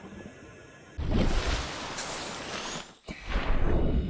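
Water splashes loudly as a swimmer breaks the surface and dives back under.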